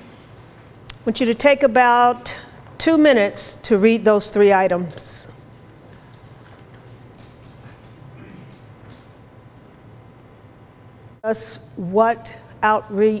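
A woman speaks into a microphone, her voice filling a large room.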